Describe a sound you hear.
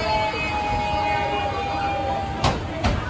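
A train door chime beeps.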